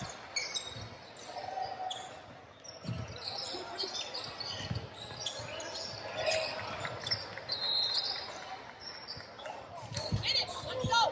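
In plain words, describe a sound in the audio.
Young male players call out to each other in a large echoing gym.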